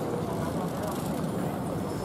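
A bicycle rolls past on a street.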